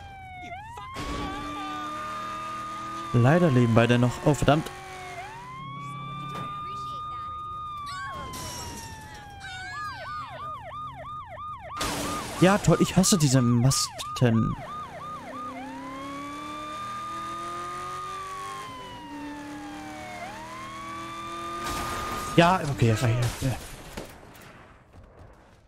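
A police siren wails and yelps.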